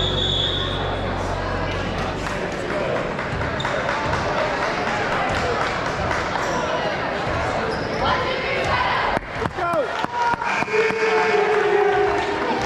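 A crowd of people chatters throughout a large echoing gym.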